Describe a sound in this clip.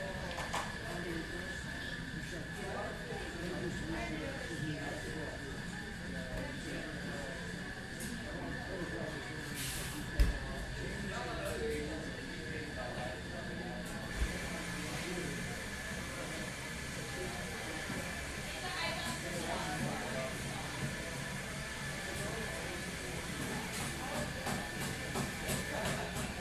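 A crowd of people chatter quietly in the background.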